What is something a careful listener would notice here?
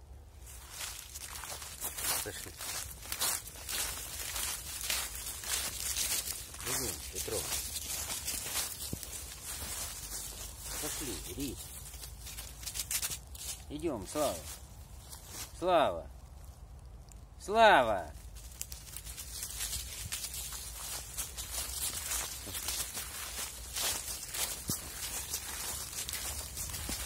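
Dry leaves crunch and rustle underfoot.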